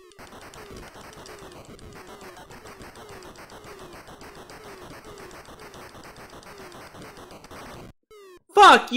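Quick electronic game blips repeat rapidly in a steady rhythm.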